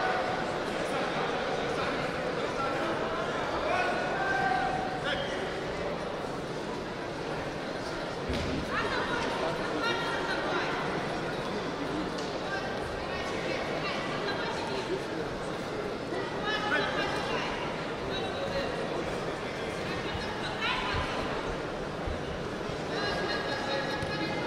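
A large crowd murmurs and shouts in a big echoing hall.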